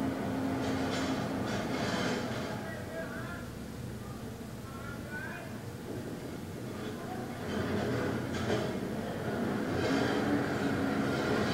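A middle-aged man speaks slowly and calmly, close by.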